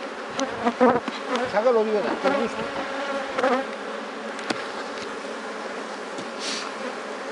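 Bees buzz around an open hive.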